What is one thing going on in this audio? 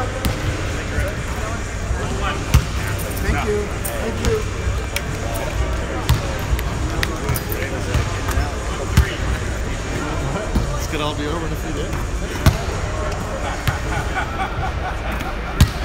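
Men talk in the background in an echoing gym.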